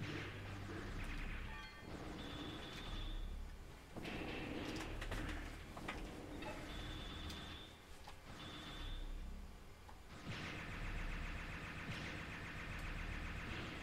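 Blasters fire in quick bursts.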